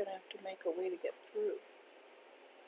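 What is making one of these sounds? An elderly woman speaks calmly close to a microphone.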